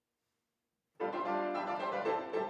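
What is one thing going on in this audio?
A grand piano plays in a large, echoing hall.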